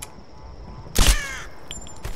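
A pistol fires a single sharp shot.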